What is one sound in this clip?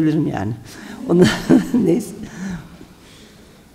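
A middle-aged woman speaks with animation into a microphone in an echoing room.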